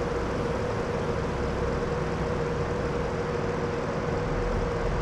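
Tyres roll over the road.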